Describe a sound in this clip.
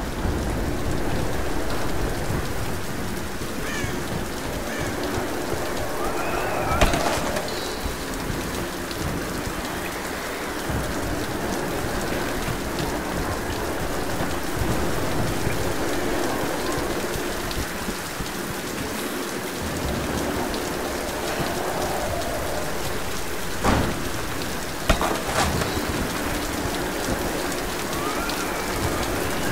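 A torch flame crackles and hisses steadily.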